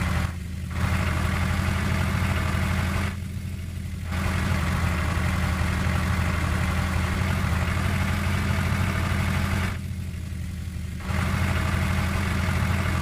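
A tractor engine hums steadily with a low drone.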